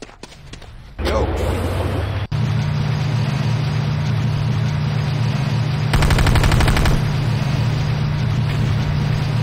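A heavy tank engine rumbles steadily at close range.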